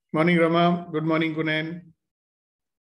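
A middle-aged man speaks calmly through an online call microphone.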